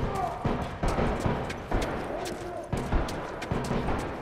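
Footsteps thud quickly up stone stairs.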